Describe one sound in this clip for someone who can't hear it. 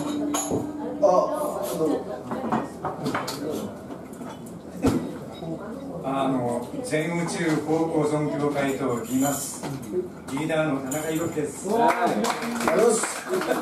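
A middle-aged man sings into a microphone.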